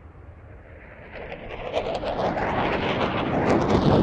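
A formation of jets roars overhead.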